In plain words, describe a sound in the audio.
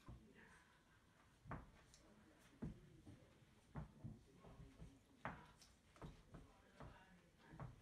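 A dog's paws thump on a wooden floor.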